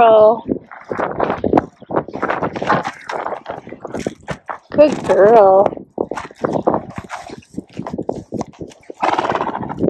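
A horse's hooves thud on a trailer floor and then step on dirt.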